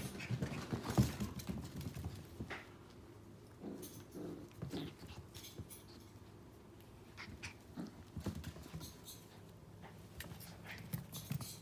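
Puppies scuffle and paw at each other on a wooden floor.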